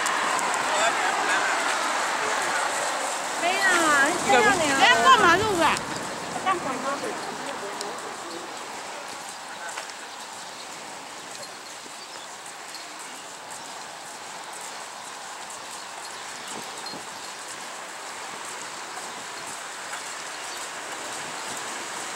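Traffic hums steadily along a road outdoors.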